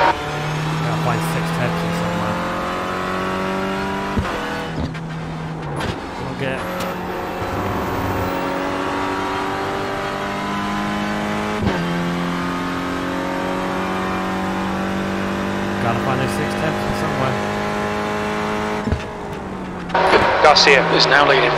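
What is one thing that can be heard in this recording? A racing car engine revs up and down through the gears.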